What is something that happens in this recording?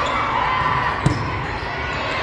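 A volleyball is struck with a loud smack.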